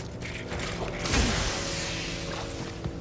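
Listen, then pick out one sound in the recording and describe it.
A heavy impact booms with a rumbling crash.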